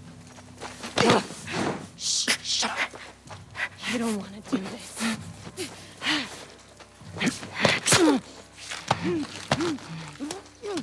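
Bodies scuffle and thump in a brief struggle.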